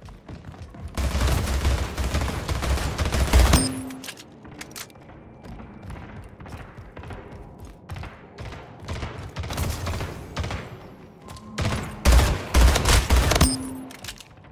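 A video game rifle fires in rapid bursts.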